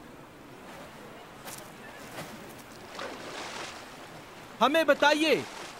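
Water laps gently nearby.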